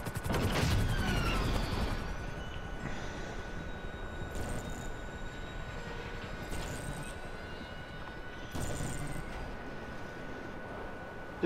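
Wind rushes past steadily.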